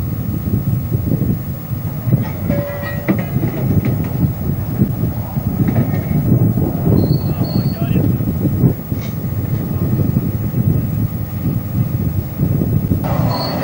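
A heavy machine's engine rumbles steadily nearby.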